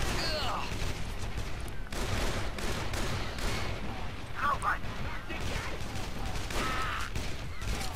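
A pistol fires repeatedly in sharp shots.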